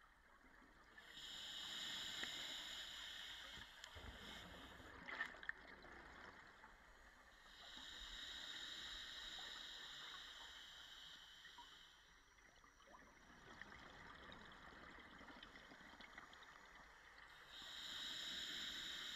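A diver breathes out underwater through a regulator in long, rushing bursts of bubbles.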